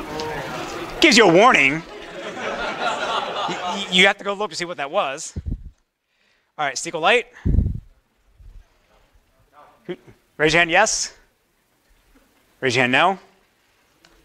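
A man lectures through a microphone.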